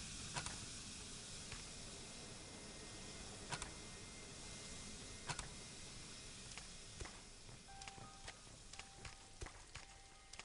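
Footsteps crunch slowly on damp ground.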